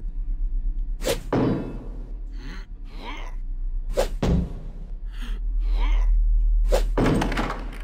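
A blade strikes a wooden door with sharp thuds.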